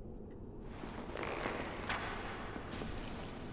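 An arrow whooshes through the air.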